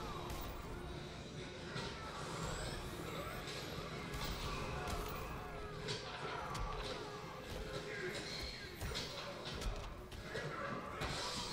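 Magic blasts whoosh and crackle in a fighting game.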